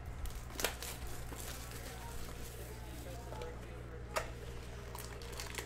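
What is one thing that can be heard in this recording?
Cardboard packaging rustles and scrapes as a box is opened.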